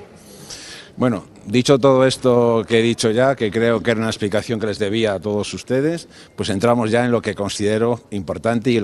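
A middle-aged man speaks firmly and with animation, close to microphones.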